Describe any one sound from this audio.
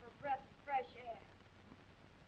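A young woman speaks briefly in a raised, emphatic voice.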